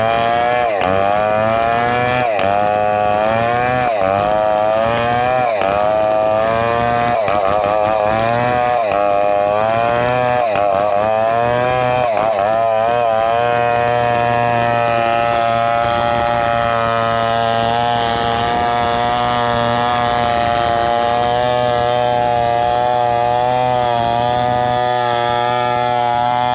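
A two-stroke chainsaw cuts under load through a coconut log.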